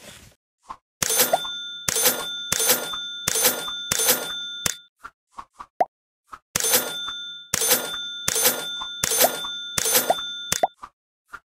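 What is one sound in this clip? Bright, tinkling chime jingles play in quick bursts, one after another.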